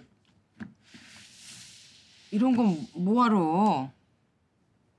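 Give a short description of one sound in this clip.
A middle-aged woman exclaims in surprise nearby.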